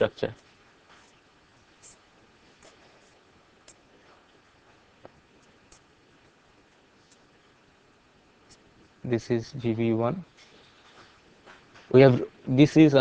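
A marker squeaks and scratches softly on paper.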